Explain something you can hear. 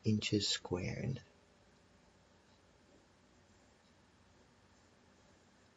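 A felt-tip marker scratches and squeaks on paper.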